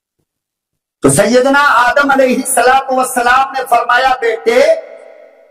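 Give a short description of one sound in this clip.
An elderly man speaks into a microphone over a loudspeaker, chanting in a drawn-out, sing-song voice.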